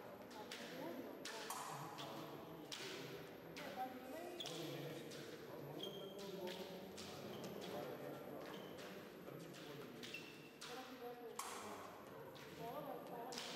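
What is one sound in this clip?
Fencers' feet shuffle and stamp on a hard floor in an echoing hall.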